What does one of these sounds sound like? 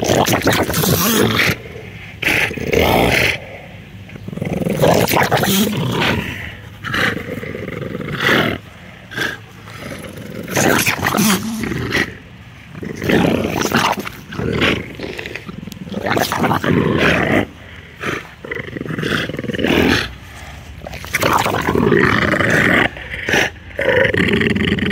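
Dogs pant and snort up close.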